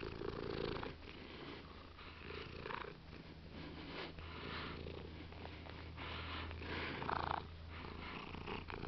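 A cat purrs steadily up close.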